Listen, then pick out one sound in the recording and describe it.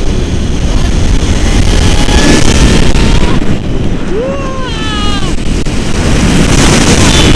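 Wind rushes loudly past a microphone.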